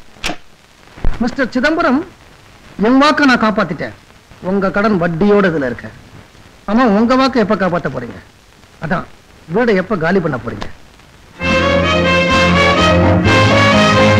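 Music with singing plays loudly from a small radio.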